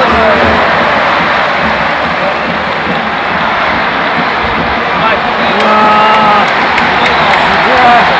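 A huge stadium crowd roars steadily in a large open space.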